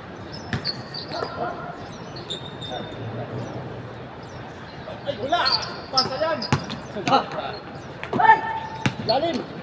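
Men shout and call out to each other during play.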